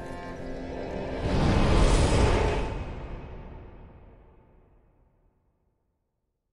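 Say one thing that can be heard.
A fire roars up in a low whoosh, then slowly fades away.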